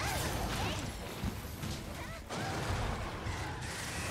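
Fire bursts and crackles.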